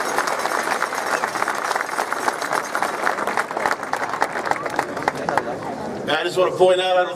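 A crowd cheers outdoors.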